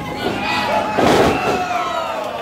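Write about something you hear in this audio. A wrestler's body slams onto a ring mat with a heavy thud.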